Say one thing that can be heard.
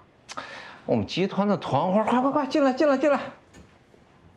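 A young woman speaks briefly and politely.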